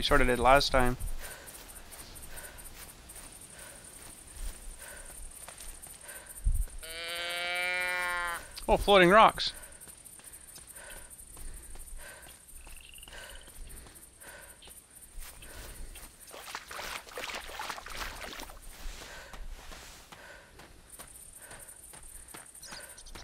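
Footsteps crunch steadily over grass and gravel.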